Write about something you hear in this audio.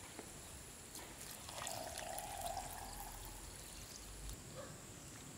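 Liquid pours into a glass jar.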